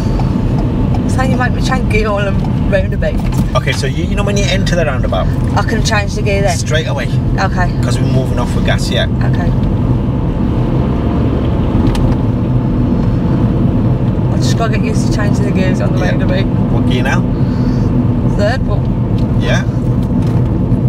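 A woman talks from close by inside a car.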